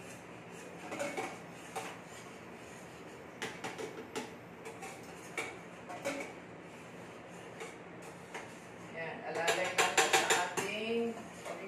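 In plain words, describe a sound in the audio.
Metal utensils clink and scrape against a pot.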